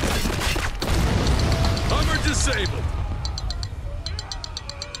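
A huge explosion booms and rumbles, then slowly dies away.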